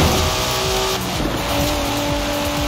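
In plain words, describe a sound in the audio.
A car engine briefly drops in pitch as the gear shifts up.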